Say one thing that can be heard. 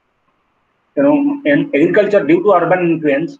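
A man speaks close to a webcam microphone.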